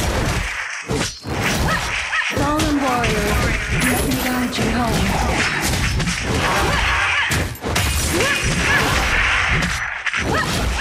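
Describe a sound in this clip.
Fantasy battle sound effects clash and whoosh in quick bursts.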